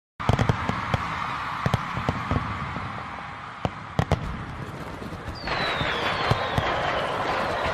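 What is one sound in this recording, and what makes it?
Fireworks bang and pop in the distance.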